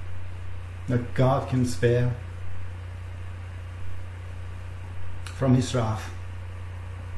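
A middle-aged man speaks calmly and slowly, close to a microphone.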